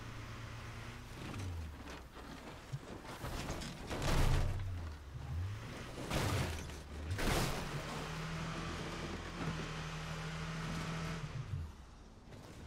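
A pickup truck engine hums and revs as it drives.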